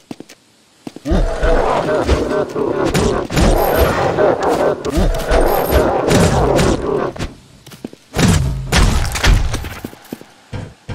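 A blade slashes and clashes in a fight.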